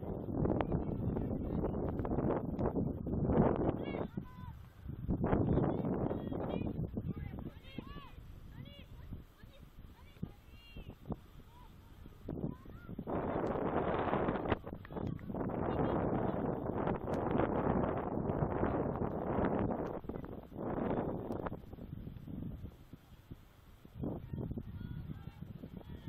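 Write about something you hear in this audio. Young women shout to each other in the distance outdoors.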